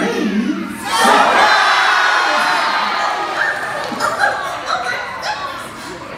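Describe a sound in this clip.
A crowd of children cheers and screams loudly.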